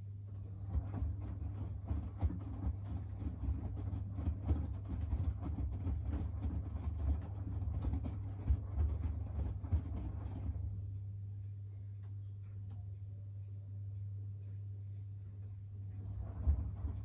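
Wet laundry sloshes and thumps inside a turning washing machine drum.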